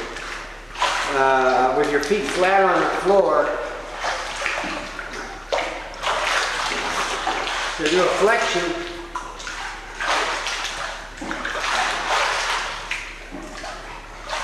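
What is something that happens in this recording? Water splashes and sloshes around a swimmer.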